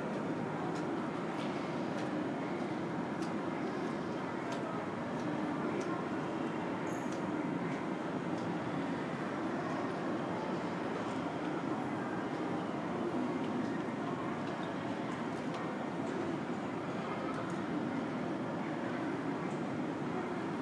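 A steady low hum of air fills a large, echoing hall.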